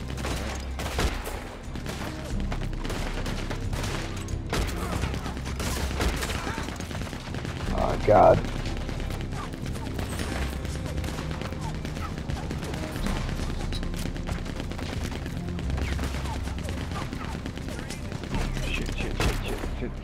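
Gunshots crack and echo among trees.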